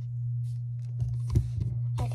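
Fingers tap on a fuzzy toy with soft thumps.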